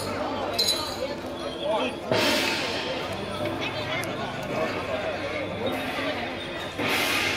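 Men talk loudly nearby in a busy outdoor crowd.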